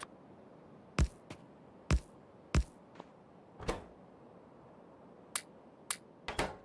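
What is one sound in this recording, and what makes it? Sharp interface clicks sound now and then.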